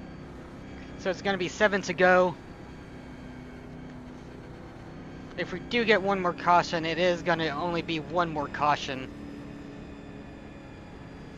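A race car engine drones steadily.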